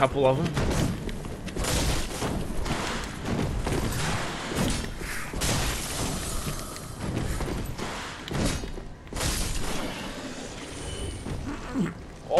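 Swords clang and slash in a fight.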